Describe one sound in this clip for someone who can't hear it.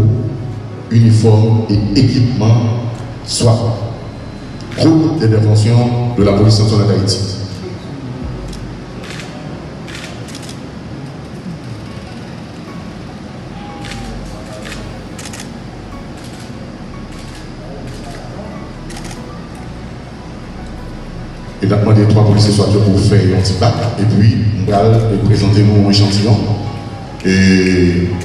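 A man speaks forcefully through a loudspeaker.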